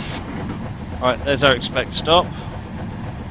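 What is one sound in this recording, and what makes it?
A middle-aged man speaks briefly and calmly into a microphone.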